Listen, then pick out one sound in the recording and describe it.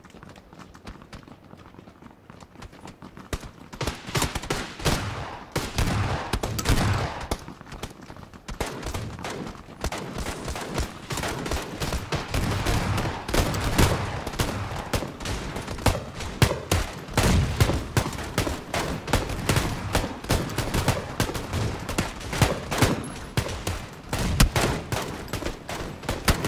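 Footsteps crunch on gravel and rubble.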